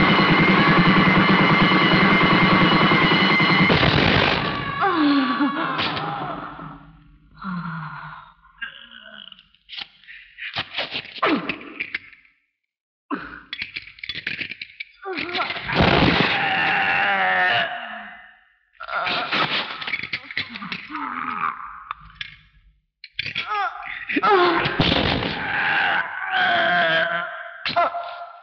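A young woman screams in pain.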